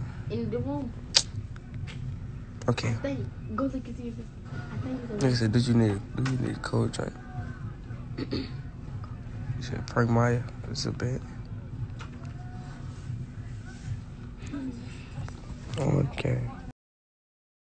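A teenage boy talks casually, close to a phone microphone.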